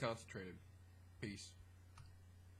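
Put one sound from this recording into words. A man speaks a few short words close by.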